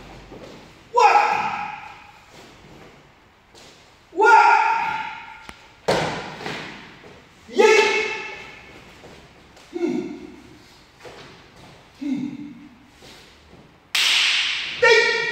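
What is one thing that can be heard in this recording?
A man lets out short, sharp shouts that echo around a large hall.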